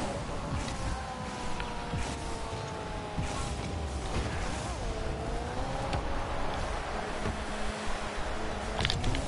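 A game car engine hums steadily and shifts in pitch.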